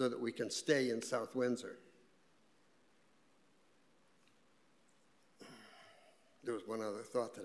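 An elderly man speaks slowly into a microphone, with pauses.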